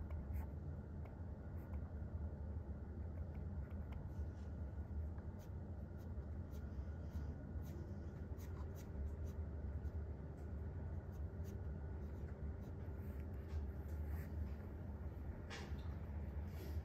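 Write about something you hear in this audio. A pen taps lightly on paper.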